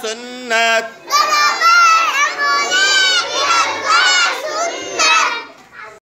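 A young girl sings up close with animation.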